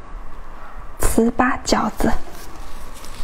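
A young woman speaks cheerfully close to a microphone.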